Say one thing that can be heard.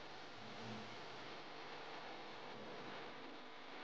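Hands softly pat and roll a ball of dough.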